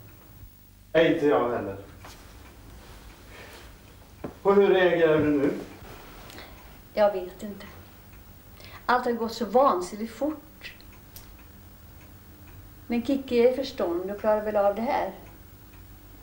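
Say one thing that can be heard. An elderly woman speaks calmly and close by, in short phrases with pauses.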